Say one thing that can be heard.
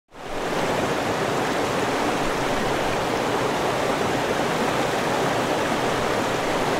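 A mountain stream rushes loudly over rocks.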